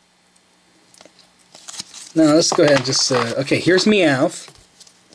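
Stiff trading cards rustle and flick against each other as they are handled.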